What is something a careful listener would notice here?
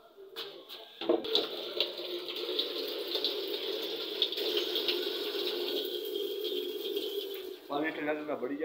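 Water pours from a tap into a container.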